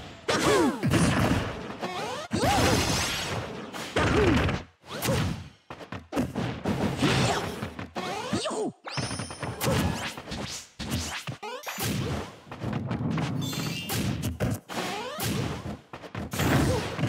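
Punches and kicks land with sharp thuds in quick succession.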